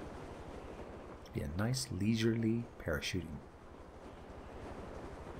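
Wind rushes steadily past a gliding parachute.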